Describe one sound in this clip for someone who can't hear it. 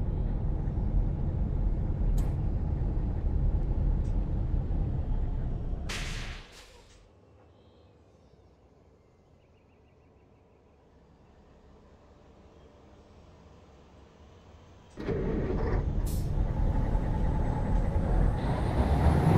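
A truck engine rumbles deeply and steadily.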